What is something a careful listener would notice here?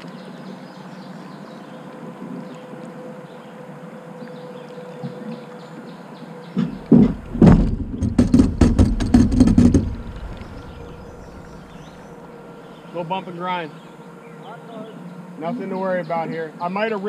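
Water laps softly against a boat hull.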